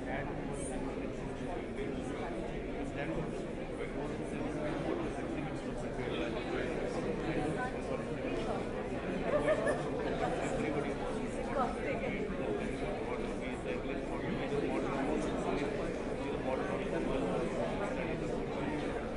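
Many adults chatter at once in a busy room.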